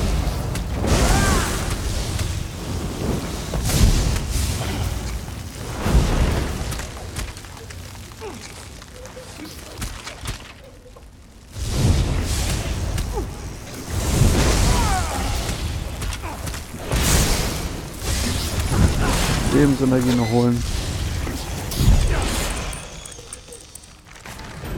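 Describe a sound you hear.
Electric bolts crackle and burst in loud blasts.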